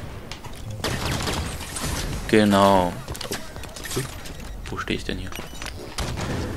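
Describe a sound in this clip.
A plasma rifle fires rapid bursts of shots.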